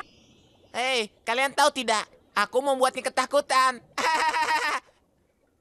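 A young man talks in a high, squeaky voice.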